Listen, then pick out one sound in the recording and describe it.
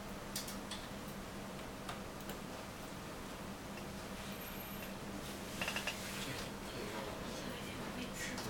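Fingers click the keys of a small phone keypad.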